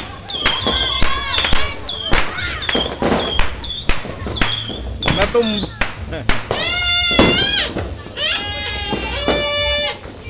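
A firework fountain hisses and sprays sparks.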